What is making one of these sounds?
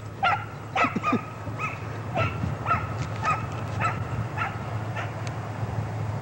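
A dog barks rapidly and excitedly nearby.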